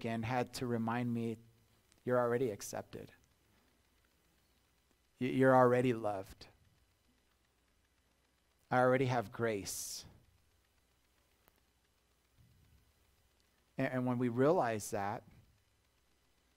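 A man speaks calmly through a microphone in short phrases with pauses.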